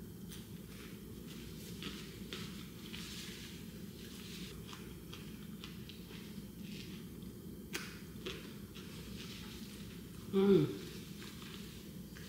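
A tissue crinkles softly in a woman's hands.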